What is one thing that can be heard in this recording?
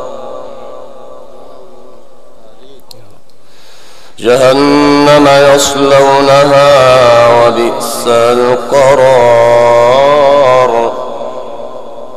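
A man chants in a long, melodic voice through a microphone and loudspeakers.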